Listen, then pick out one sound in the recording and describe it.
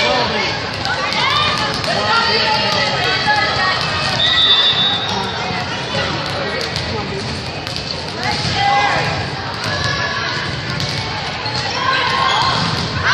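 A crowd of young spectators cheers and shouts in a large echoing gym.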